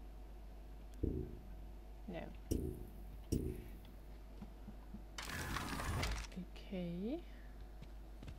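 A metal locker door clanks shut.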